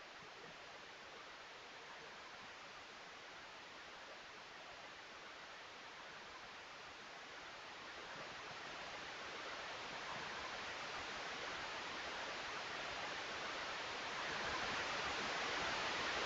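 Wind rushes steadily past, growing louder.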